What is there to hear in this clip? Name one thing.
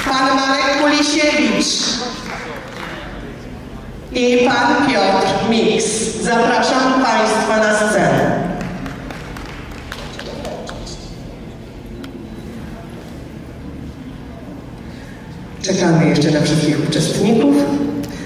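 A group of children and adults sings together in a large hall.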